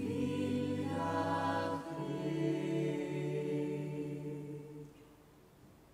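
A choir of men and women sings together through microphones.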